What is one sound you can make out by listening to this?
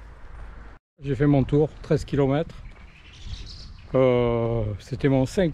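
A middle-aged man speaks calmly, close to a microphone.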